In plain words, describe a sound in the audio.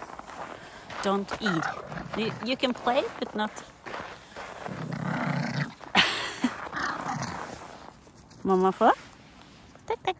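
A small dog yaps and whines.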